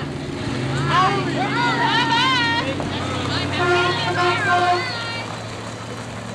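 A group of young people shout and cheer nearby.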